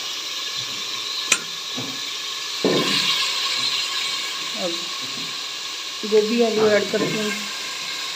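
Cauliflower pieces drop into a pot with soft thuds.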